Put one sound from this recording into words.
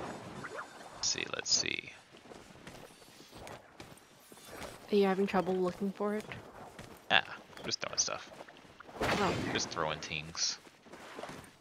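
Bright magical chimes sparkle and ring out in short bursts.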